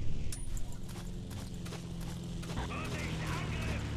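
A propeller plane drones overhead.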